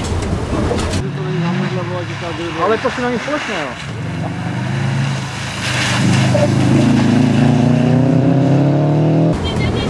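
A rally car's engine revs loudly as it approaches and passes by.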